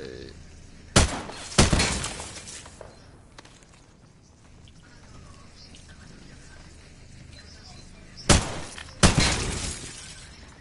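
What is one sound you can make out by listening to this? Gunshots crack loudly, each followed by a short echo.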